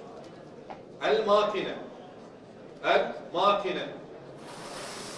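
A man reads out loud in short bursts through a microphone.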